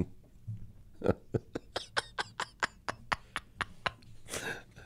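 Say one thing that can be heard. A middle-aged man laughs heartily close to a microphone.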